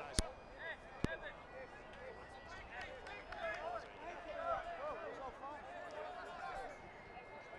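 A crowd of spectators murmurs in the distance.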